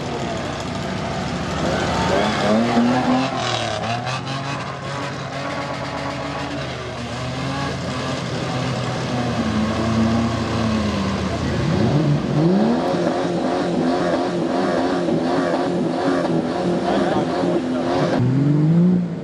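A truck engine roars and revs hard.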